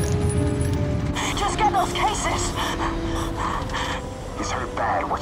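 Another man in a breathing mask asks a question through the mask.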